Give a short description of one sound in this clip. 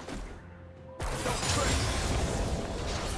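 A spell bursts with a bright magical whoosh.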